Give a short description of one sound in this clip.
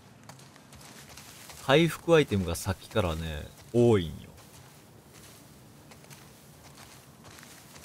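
Footsteps rustle through dense leafy plants.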